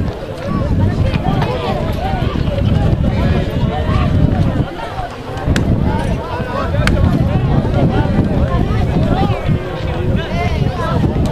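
Men shout and call out at a distance across an open field.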